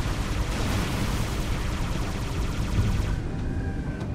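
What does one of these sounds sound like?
Energy weapons fire rapid shots.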